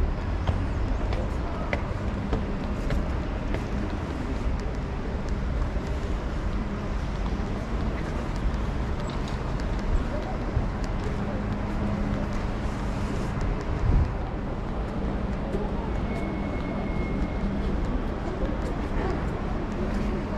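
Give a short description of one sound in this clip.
Footsteps tap on hard paving close by.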